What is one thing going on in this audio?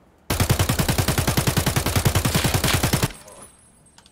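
An automatic rifle fires a rapid burst.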